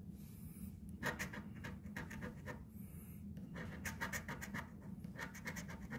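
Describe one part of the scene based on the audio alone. A coin scratches rapidly across a scratch card.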